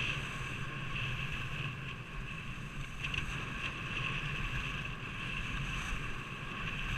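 Wind rushes past, close and buffeting.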